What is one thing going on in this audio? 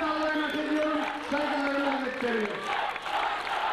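A man shouts with fervour through a loudspeaker, his voice echoing.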